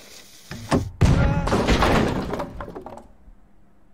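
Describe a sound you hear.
A cannon fires with a loud, rumbling boom.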